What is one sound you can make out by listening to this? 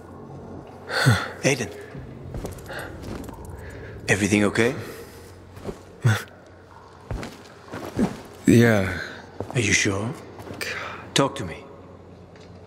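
A man speaks quietly and tensely, close by.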